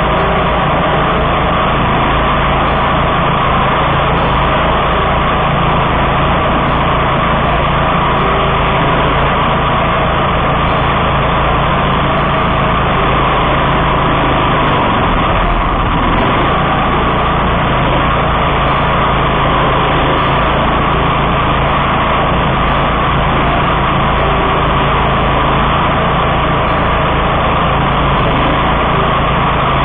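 A mower engine runs loudly and steadily close by.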